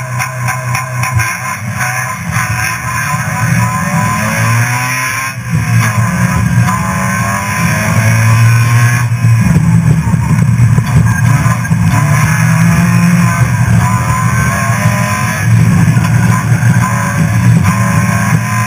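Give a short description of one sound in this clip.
A car engine revs hard, rising and falling as gears change.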